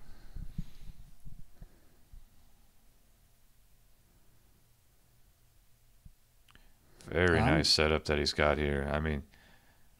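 Small plastic pieces click softly as they are set down on a mat.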